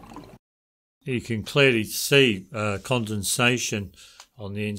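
A middle-aged man speaks calmly and clearly over an online call.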